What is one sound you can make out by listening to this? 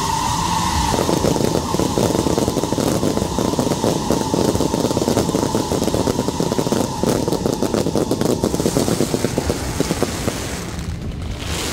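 Fireworks crackle and pop rapidly overhead.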